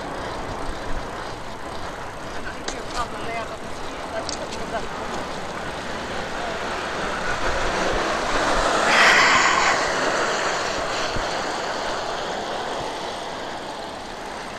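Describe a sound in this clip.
Tyres hiss on a wet road as a vehicle drives along.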